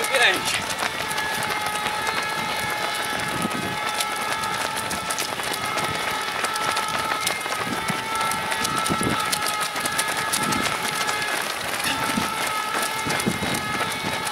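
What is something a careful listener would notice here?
Many runners' footsteps patter and slap on a wet road.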